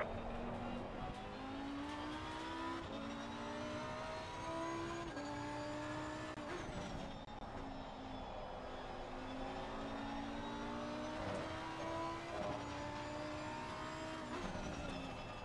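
A racing car's gears shift with short breaks in the engine note.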